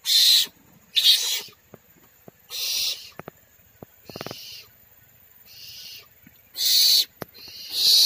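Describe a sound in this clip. Young barn owls hiss and screech loudly in short harsh bursts close by.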